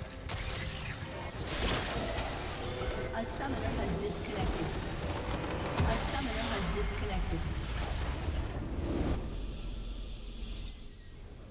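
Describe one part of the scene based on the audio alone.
Game spell effects crackle and boom in a loud fight.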